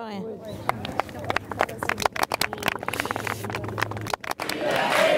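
A group of people clap their hands outdoors.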